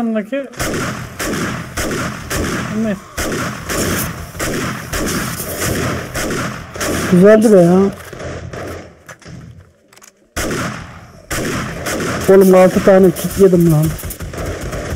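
An automatic rifle fires rapid bursts of gunshots.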